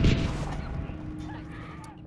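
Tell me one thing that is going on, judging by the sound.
A flamethrower roars in a burst of flame.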